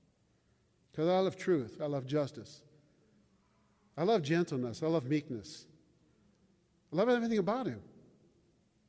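An elderly man speaks calmly into a microphone in a large echoing hall, in short phrases with pauses.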